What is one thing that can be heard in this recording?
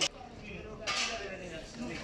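A shovel scrapes on stone.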